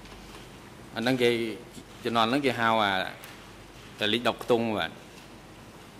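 A second man answers into a microphone, speaking calmly.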